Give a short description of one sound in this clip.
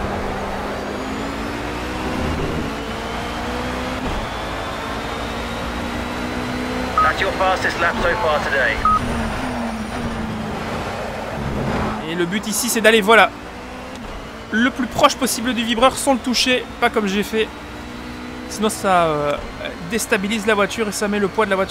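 A racing car engine roars and whines as it shifts up through the gears.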